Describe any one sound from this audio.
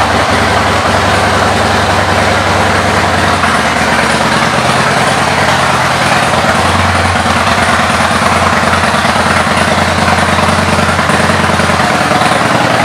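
A motorcycle engine idles with a steady, low, throbbing rumble.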